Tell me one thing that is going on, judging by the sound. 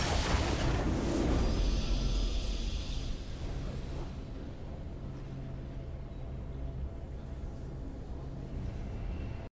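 A triumphant fanfare swells for a victory.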